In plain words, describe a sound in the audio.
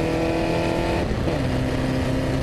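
A racing car engine drops in pitch abruptly as the gear changes.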